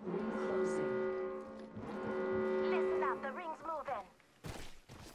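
A loud alert tone sounds in a game, then trills and fades.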